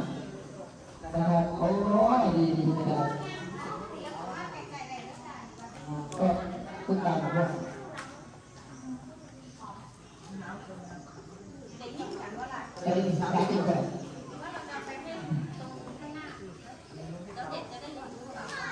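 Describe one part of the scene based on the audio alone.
A woman speaks calmly through a microphone and loudspeaker, her voice echoing under a large open roof.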